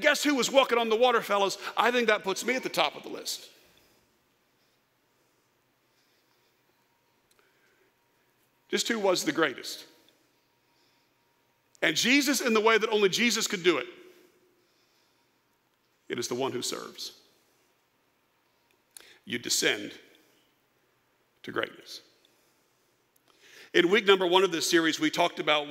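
A middle-aged man speaks with animation through a microphone, pausing often.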